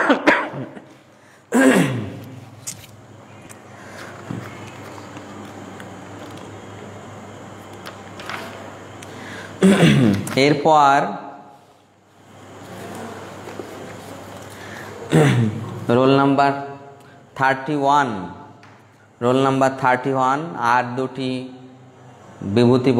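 A man chants in a drawn-out, sung voice close to a microphone, with pauses between phrases.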